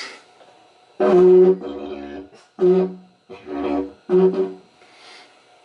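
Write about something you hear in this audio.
A didgeridoo drones in short, deep blasts.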